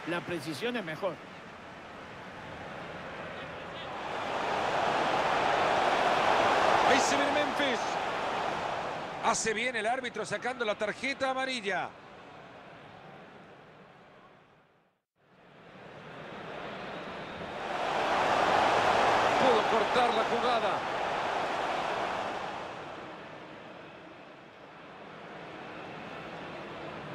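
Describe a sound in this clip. A large stadium crowd roars and cheers, swelling loudly and then dying down.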